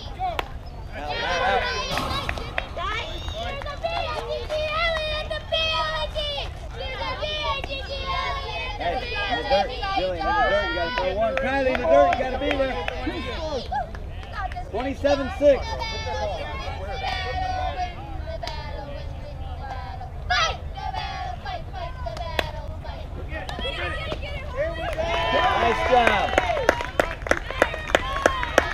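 Young women shout and cheer with animation from across an open field.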